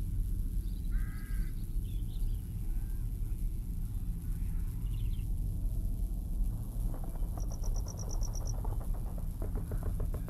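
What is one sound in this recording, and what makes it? Birds call now and then overhead.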